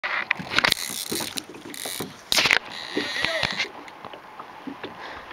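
A fishing reel clicks and whirs as the line is wound in.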